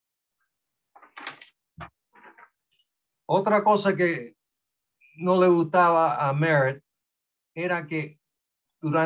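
An elderly man speaks calmly over an online call, in short phrases with pauses.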